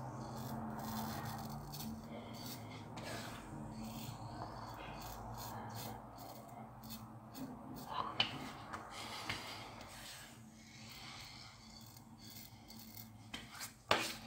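A double-edge safety razor scrapes over stubble.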